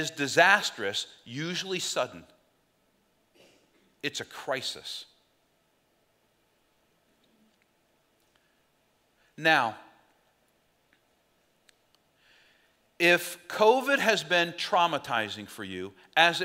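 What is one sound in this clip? A middle-aged man speaks with animation through a headset microphone, pausing often.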